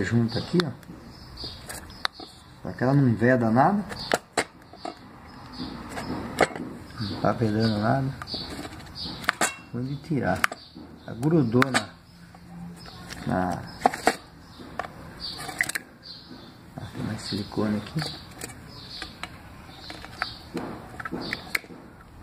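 A metal tool taps and scrapes against a small metal part.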